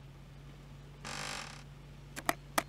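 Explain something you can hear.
A small wooden cabinet door opens.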